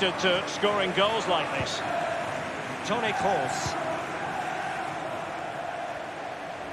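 A large stadium crowd murmurs steadily in the background.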